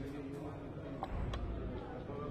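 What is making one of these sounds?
Game pieces click as they are moved on a wooden board.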